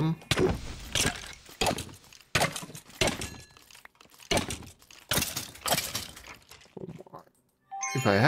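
Quick sword blows thud and clatter against bony creatures.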